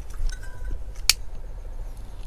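A lighter clicks and sparks.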